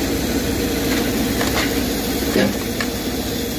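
Logs knock and thud against each other.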